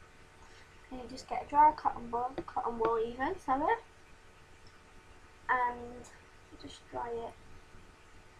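A young woman speaks close by in short bursts.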